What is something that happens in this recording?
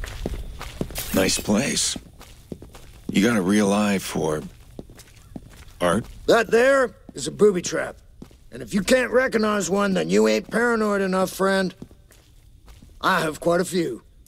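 A man talks casually at length.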